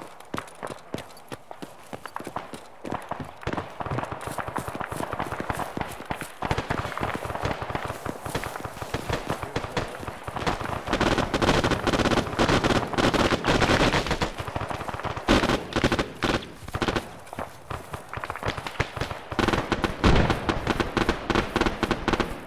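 Footsteps run quickly over wooden boards and grass.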